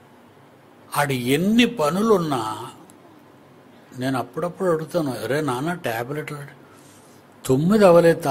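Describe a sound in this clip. An elderly man speaks with animation into a close microphone.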